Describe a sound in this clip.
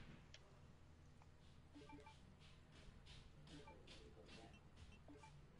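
Soft electronic menu chimes sound as options are confirmed.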